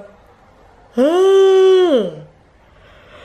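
A young woman sings out a long, loud wailing note.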